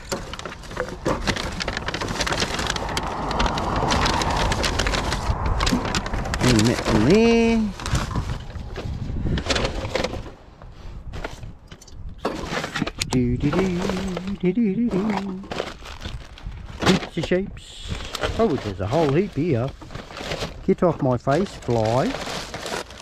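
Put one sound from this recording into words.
Plastic bottles crinkle and crackle as they are handled.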